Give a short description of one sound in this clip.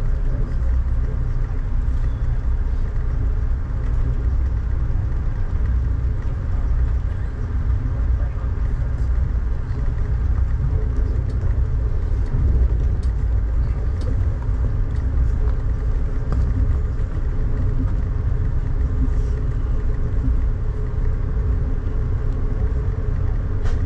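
Rain patters on a window.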